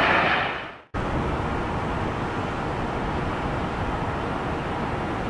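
A small jet's engines hum on its approach.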